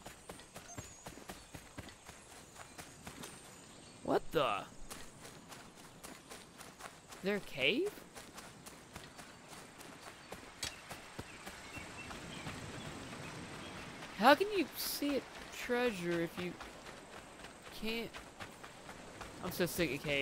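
Footsteps run quickly over grass and sand.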